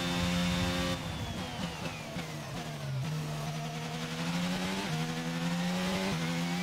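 A racing car engine winds down while braking, then builds again.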